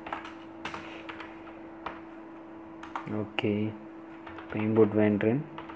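Keys on a keyboard click in quick, uneven bursts of typing.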